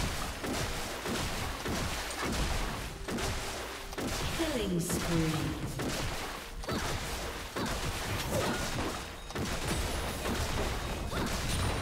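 Video game spell blasts and weapon hits clash in quick bursts.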